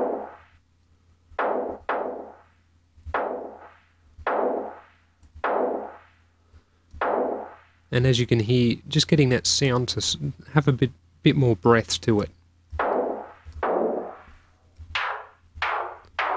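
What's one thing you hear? A synthesizer plays short repeated notes that fall away quickly.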